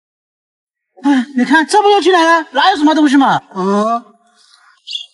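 A young man speaks loudly and with animation, close by.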